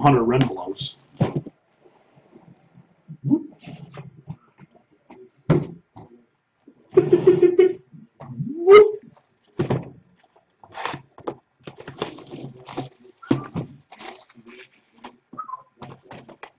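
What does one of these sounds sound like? Cardboard boxes rustle and tap as they are handled.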